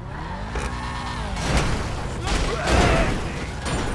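A car crashes with a loud metal crunch.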